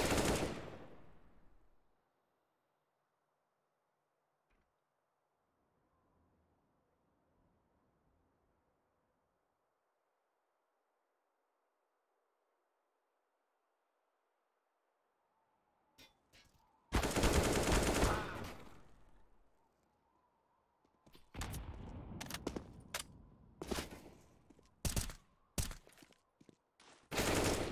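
Footsteps patter on hard ground.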